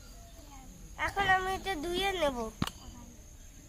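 A young girl speaks softly nearby.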